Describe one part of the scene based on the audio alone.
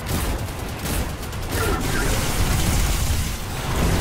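Energy weapons crackle and explode.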